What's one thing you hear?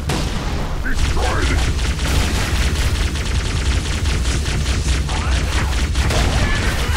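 Energy weapons fire in rapid bursts with a buzzing hiss.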